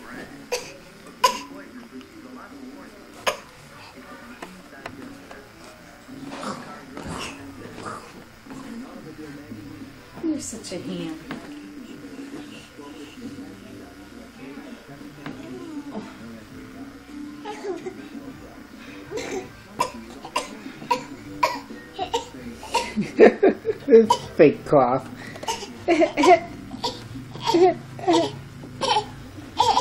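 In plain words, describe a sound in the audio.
A woman talks softly and encouragingly to a baby close by.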